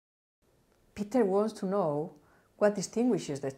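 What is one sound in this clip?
A middle-aged woman speaks calmly and clearly.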